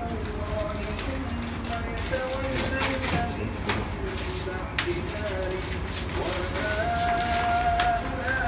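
Several men chant together in low voices close by.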